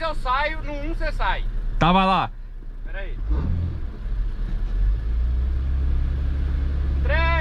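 A car engine hums low inside the car and grows louder as the car speeds up.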